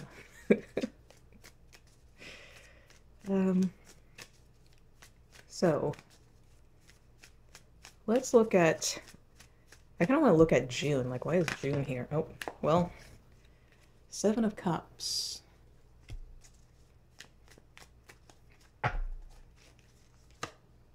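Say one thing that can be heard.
Cards shuffle and slap together.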